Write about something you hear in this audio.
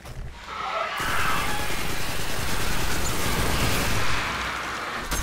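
A video game automatic rifle fires in rapid bursts.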